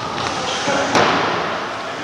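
A body thuds onto a wrestling ring mat.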